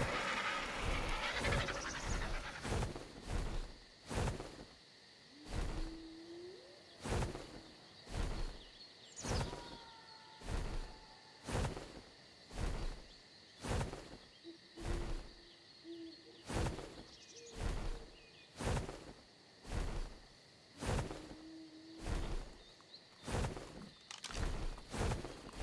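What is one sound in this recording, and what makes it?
Heavy footsteps thud on the ground at a steady pace.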